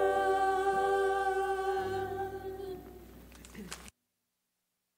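A small choir sings a hymn together and the last note fades.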